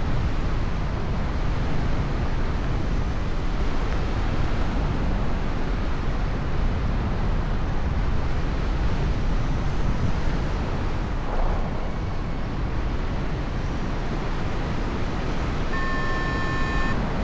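Strong wind rushes and buffets loudly past the microphone high in the air.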